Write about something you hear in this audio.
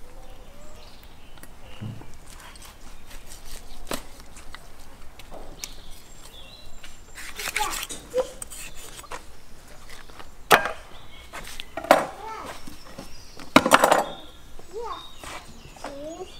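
A knife cuts and scrapes through raw meat and bone.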